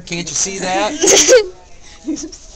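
A boy laughs close by.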